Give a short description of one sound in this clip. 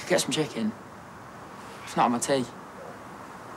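A teenage boy speaks quietly and tensely, close by.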